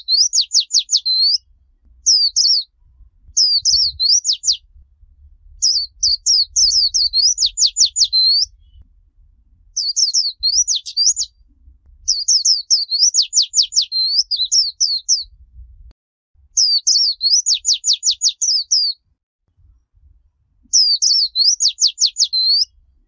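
A small bird sings close by in repeated bursts of high, quick chirps and trills.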